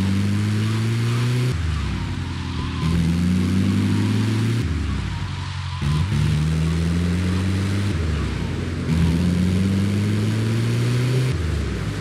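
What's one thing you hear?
An engine revs up and drops back again and again as the gears shift.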